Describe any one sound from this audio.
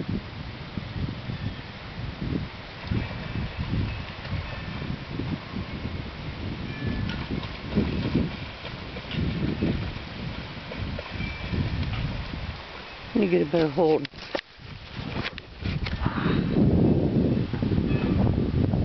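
Wind rumbles outdoors.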